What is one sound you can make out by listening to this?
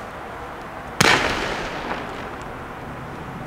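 A firework bursts with a loud bang that echoes away.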